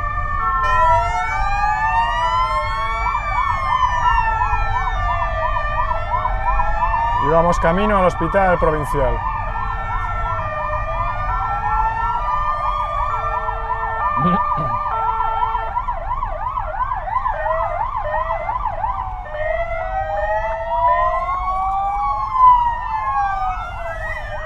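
Several police sirens wail and warble at once, close by and farther off.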